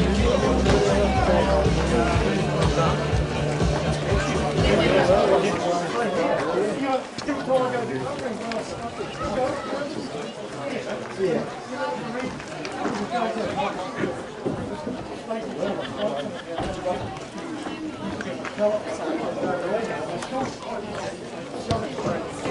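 Distant players call out to one another across an open field.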